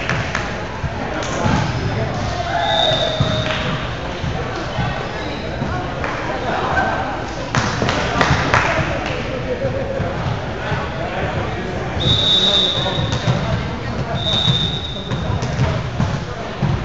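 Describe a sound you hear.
Young players call out to each other in a large echoing hall.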